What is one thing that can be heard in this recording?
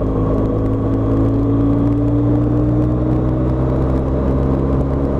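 A motorcycle engine hums steadily at speed, close by.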